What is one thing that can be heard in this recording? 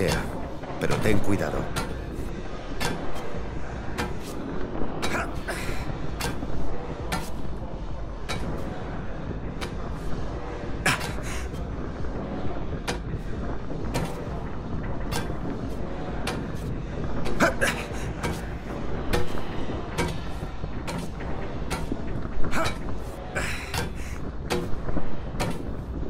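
Hands grab and knock against metal scaffolding pipes.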